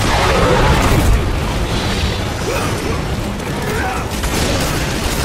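A huge creature roars loudly.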